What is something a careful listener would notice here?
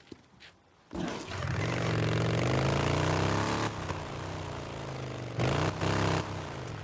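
A motorcycle engine starts and rumbles loudly as it rides off.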